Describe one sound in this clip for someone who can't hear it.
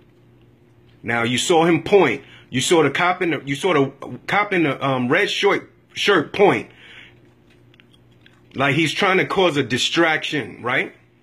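A man speaks loudly and urgently nearby.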